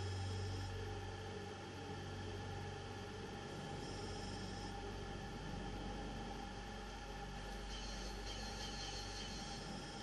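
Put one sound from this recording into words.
A low electronic drone hums steadily.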